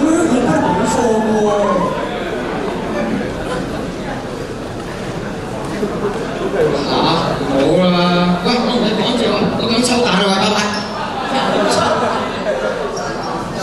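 A young man speaks with animation through loudspeakers in a large echoing hall.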